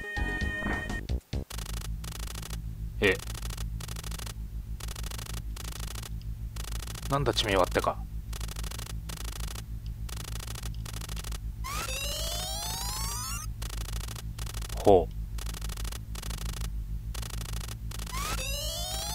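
Electronic game music plays with a steady, pulsing beat.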